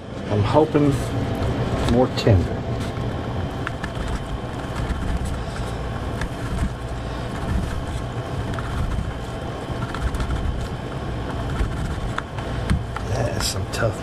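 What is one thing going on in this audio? A knife slices through meat and taps on a plate.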